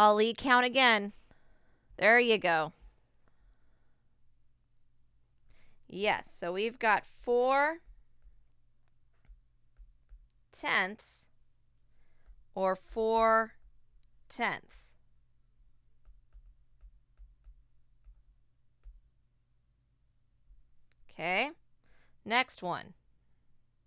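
A woman speaks calmly and clearly into a microphone in short phrases with pauses.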